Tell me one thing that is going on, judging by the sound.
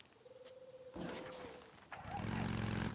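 A motorcycle engine starts up.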